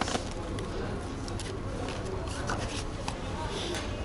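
A package drops onto other items in a box.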